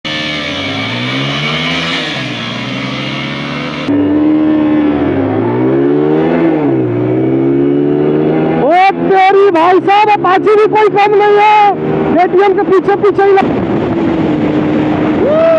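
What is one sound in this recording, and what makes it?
A motorcycle engine revs up and down loudly.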